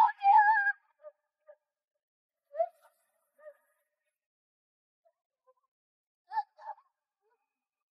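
A young woman cries out in short, breathless calls.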